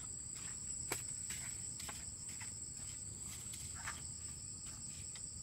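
Footsteps scuff on bare dirt ground.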